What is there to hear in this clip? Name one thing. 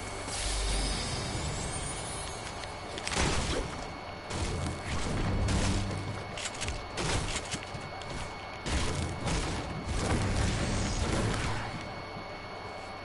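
Footsteps thump quickly across a wooden floor.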